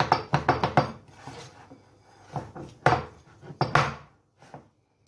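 A spoon clinks and scrapes against a glass bowl.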